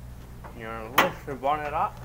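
A bonnet latch clicks open.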